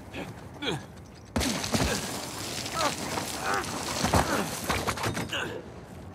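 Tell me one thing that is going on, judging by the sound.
Waves crash against rocks below.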